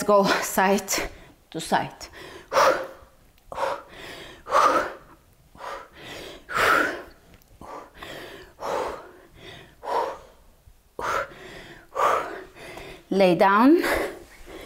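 A young woman speaks calmly and clearly into a close microphone.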